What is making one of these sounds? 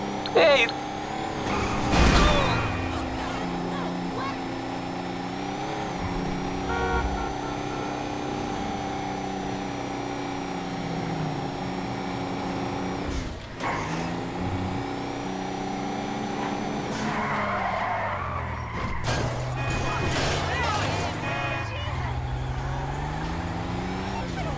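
A car engine hums steadily and revs up and down as the car drives.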